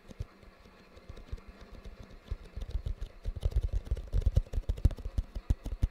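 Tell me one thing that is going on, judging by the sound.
Fingers scratch and rub on a cardboard box close to a microphone.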